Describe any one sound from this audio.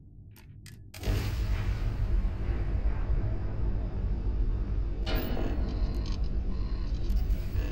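A spaceship's engines rumble with a deep, steady roar.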